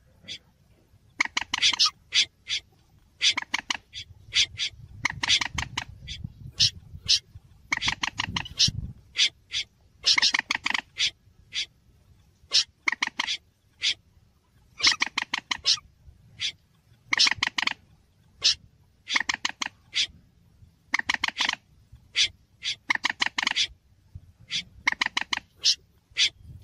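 A bird calls in quick chattering bursts again and again.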